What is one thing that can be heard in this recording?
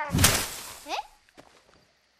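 A young boy cries out in surprise.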